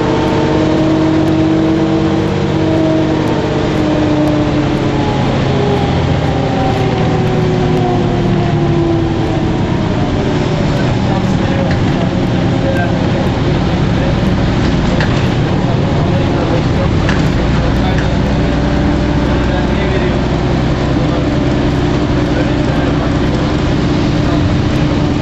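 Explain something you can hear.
A bus rattles and rumbles as it drives along the road.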